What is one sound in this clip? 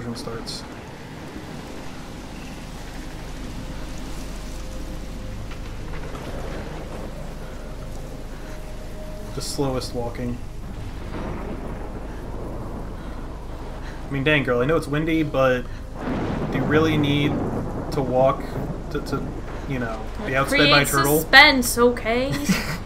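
A strong storm wind roars steadily.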